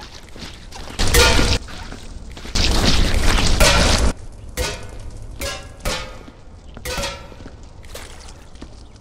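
A metal bin knocks and rattles as it is tipped over.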